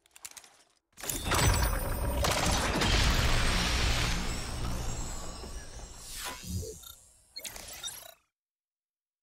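A glowing energy beam surges with a loud rushing roar.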